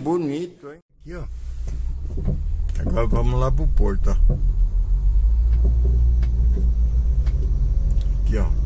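A car engine hums low and steady while driving.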